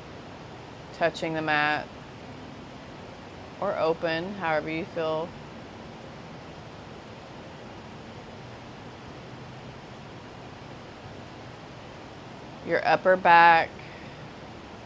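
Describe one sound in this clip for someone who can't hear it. A woman speaks calmly and softly, close by, in short phrases with long pauses.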